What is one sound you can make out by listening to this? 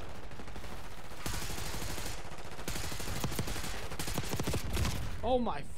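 Video game gunfire rattles in rapid bursts.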